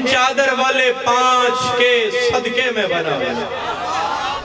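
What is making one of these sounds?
A young man chants loudly through a microphone and loudspeakers.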